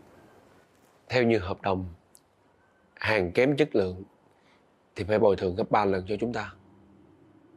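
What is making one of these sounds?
A man answers in a calm, firm voice.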